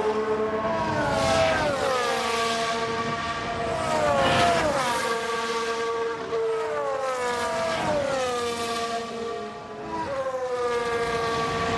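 A racing car engine whines at high revs and drops in pitch as the car shifts gears and passes by.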